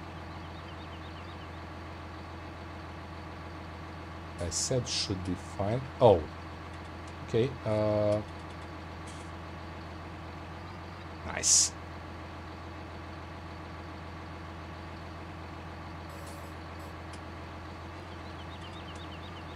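A tractor engine idles steadily.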